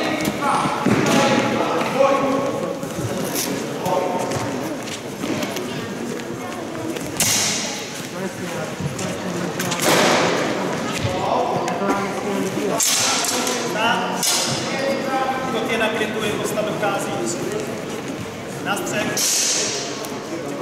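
Steel longswords clash and ring in a large echoing hall.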